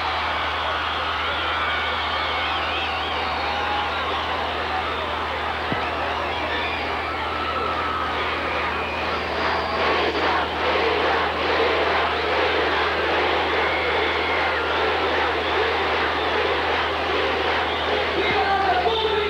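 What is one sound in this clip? A live band plays music loudly through loudspeakers.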